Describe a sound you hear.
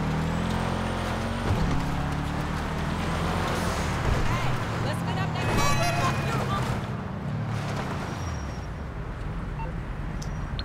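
A car engine revs and roars as the car drifts along the road.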